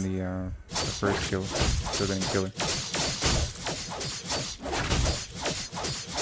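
Sharp video game blows and spell effects crash in quick succession.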